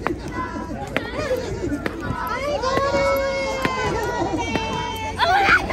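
Many feet thump on the ground as children land from jumps.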